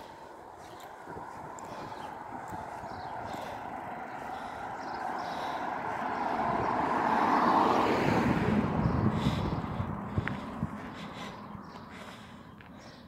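A car approaches along the road and passes close by, then fades.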